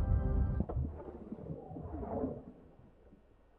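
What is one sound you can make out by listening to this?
Water swirls and bubbles as a figure swims underwater.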